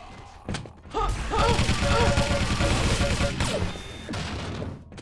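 An electric gun crackles and buzzes in a rapid burst.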